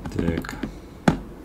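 A small plastic case clicks into place.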